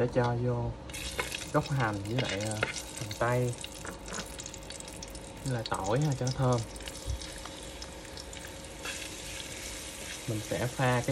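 Onion slices sizzle in hot oil.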